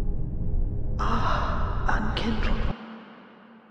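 A magical chime shimmers and rings out.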